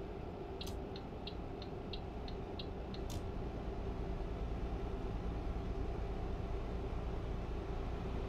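A truck engine drones steadily while driving.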